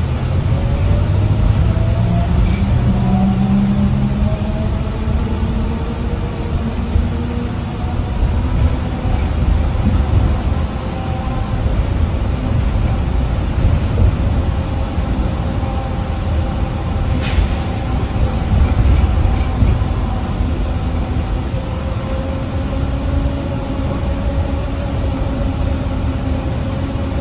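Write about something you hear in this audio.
A bus engine hums and whines steadily as the bus drives along.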